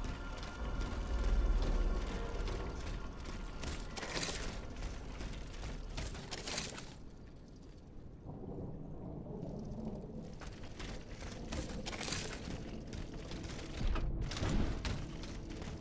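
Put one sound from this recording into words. Footsteps thud on wooden planks and soft ground.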